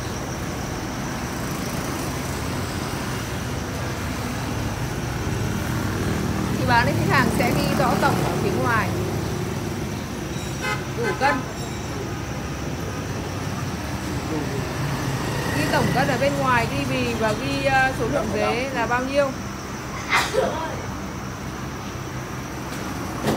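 Motorbikes and traffic pass steadily outdoors.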